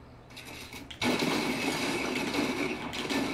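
Gunshots fire rapidly and loudly.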